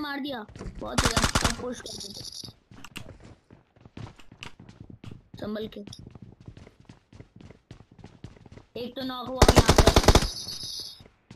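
Rapid gunfire bursts out in short volleys.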